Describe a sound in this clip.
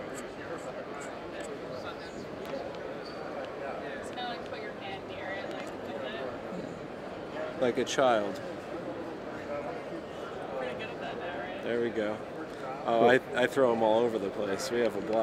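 A man speaks close by, calmly explaining.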